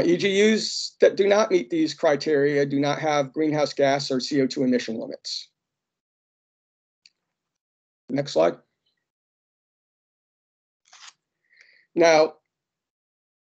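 A man speaks calmly over an online call, pausing between phrases.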